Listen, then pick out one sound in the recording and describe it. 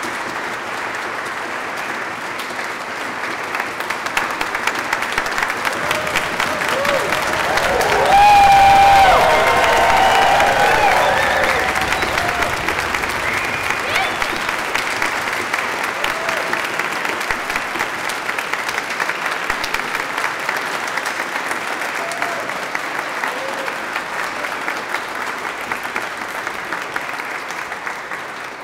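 A large crowd applauds steadily in a big echoing hall.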